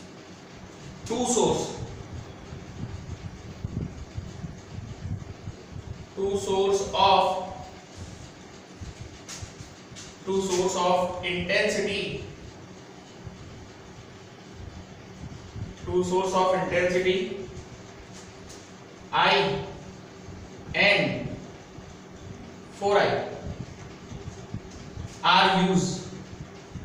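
A young man speaks slowly in short phrases, as if dictating, close by.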